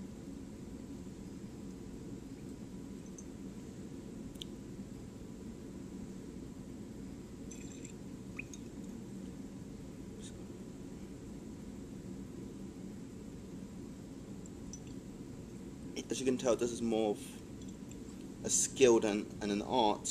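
Liquid sloshes softly in a glass flask as it is swirled.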